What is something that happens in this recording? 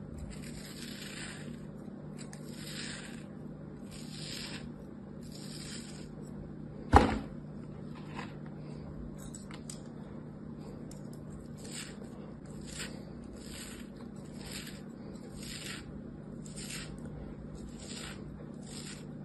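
A small knife slices through soft sand with repeated gentle scraping strokes.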